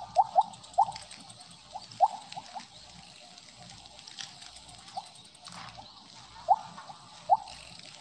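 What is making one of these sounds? Short rising game blips chime again and again.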